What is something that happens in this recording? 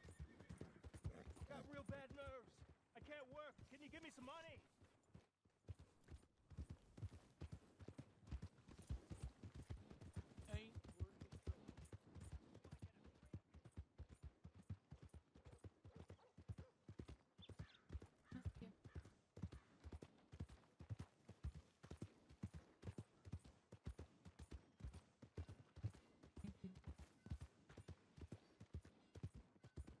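A horse gallops with steady, rapid hoofbeats on a dirt track.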